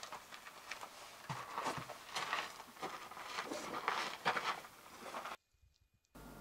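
Footsteps scrape and crunch on loose rock in an echoing tunnel.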